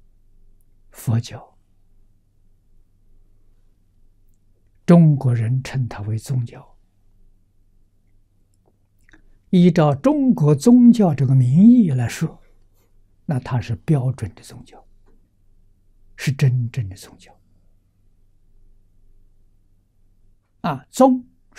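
An elderly man speaks calmly into a close microphone, in short phrases with long pauses.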